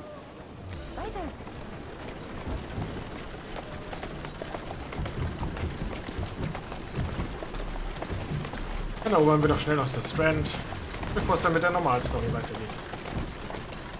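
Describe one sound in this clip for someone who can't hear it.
Carriage wheels rattle over cobblestones.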